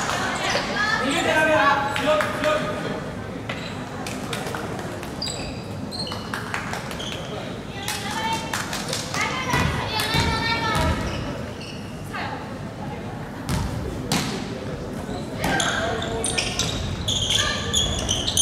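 Spectators cheer and shout from the stands.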